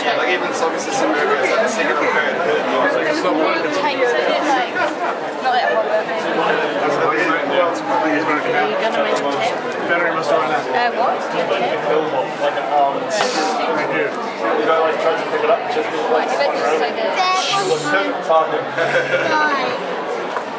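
Many children chatter and call out all around.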